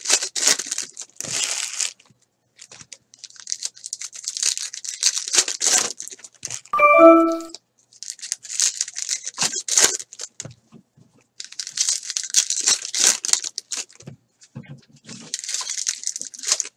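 Foil wrappers crinkle and rustle as hands tear open card packs.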